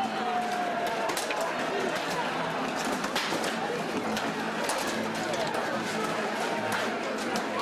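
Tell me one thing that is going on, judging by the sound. Plastic shields clatter and bang against each other.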